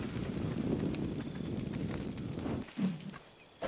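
A torch flame crackles and roars.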